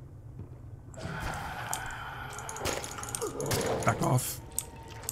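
A machine hisses and crackles, throwing off sparks.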